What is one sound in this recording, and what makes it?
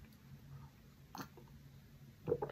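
A man sips a drink from a mug.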